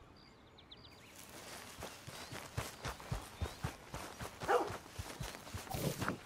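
Footsteps thud quickly on grass as a man runs.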